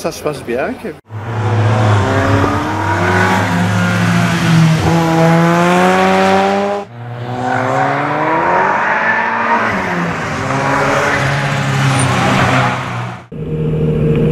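A racing car engine roars and revs hard, rising and falling in pitch.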